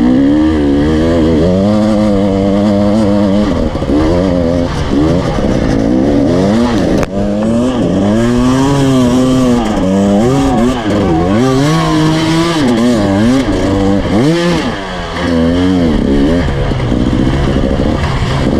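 Loose gravel crunches under tyres.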